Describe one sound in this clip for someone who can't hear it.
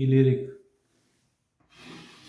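Chalk scrapes on a blackboard.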